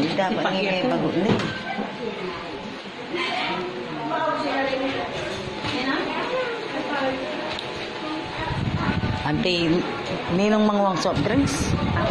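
Several women and children talk and chatter nearby.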